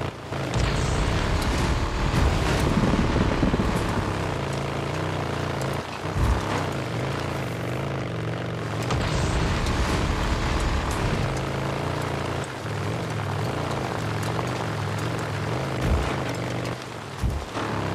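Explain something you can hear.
Tyres crunch over gravel and dirt.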